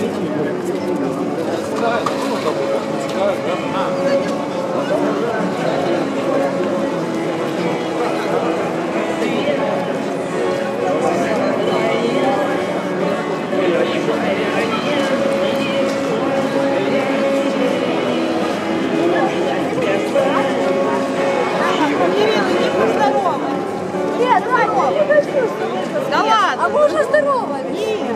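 Many people chatter and talk outdoors.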